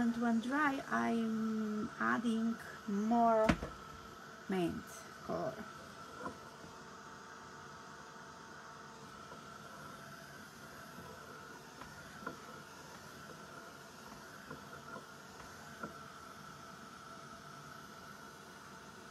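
A heat gun blows with a steady whirring hum.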